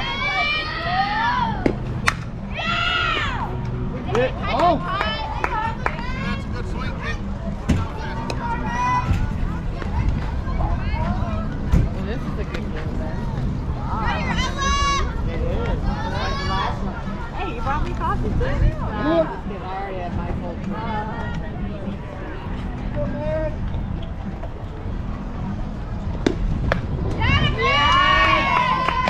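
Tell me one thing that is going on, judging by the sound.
Young girls cheer and chant loudly outdoors.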